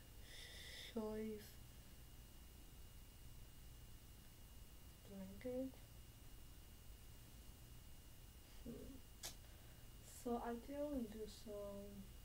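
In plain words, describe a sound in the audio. A young woman sings short phrases close to the microphone.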